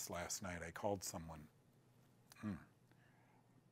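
An older man speaks calmly and close to a microphone.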